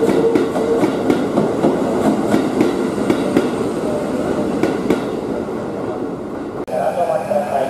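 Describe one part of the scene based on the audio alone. A train rolls past close by, wheels clattering rhythmically over rail joints.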